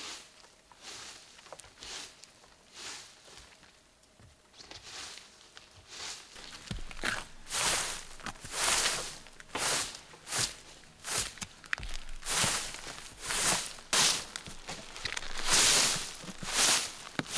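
A broom sweeps pine needles off a roof in quick, rhythmic strokes.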